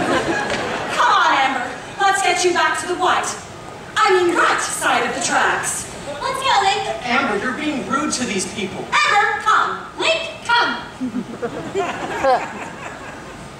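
A young woman sings loudly on a stage, heard from the audience in a large hall.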